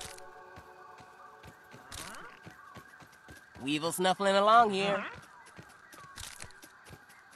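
Light footsteps patter steadily on soft ground.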